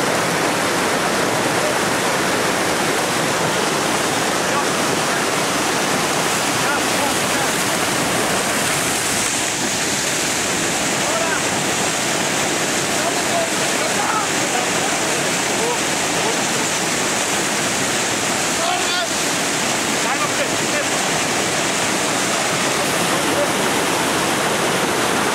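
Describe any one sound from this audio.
White water rushes and roars loudly close by.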